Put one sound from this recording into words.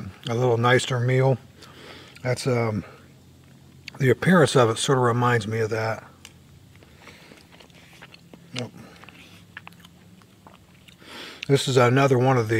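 A middle-aged man speaks calmly and closely, in short phrases with pauses.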